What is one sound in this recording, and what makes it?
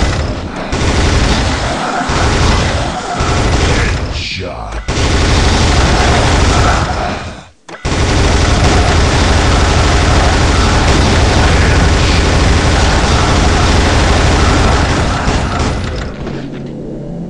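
A heavy machine gun fires in rapid, roaring bursts.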